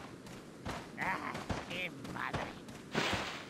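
A young man speaks through a headset microphone.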